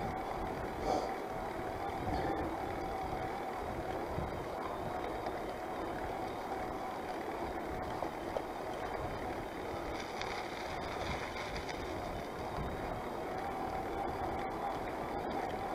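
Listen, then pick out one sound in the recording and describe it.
Wind buffets loudly against a moving bicycle rider.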